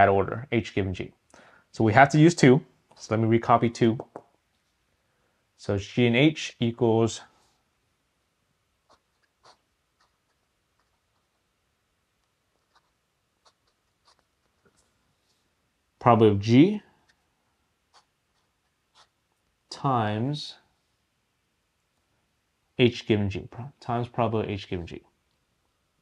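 A man speaks calmly and clearly into a close microphone, in short bursts with pauses.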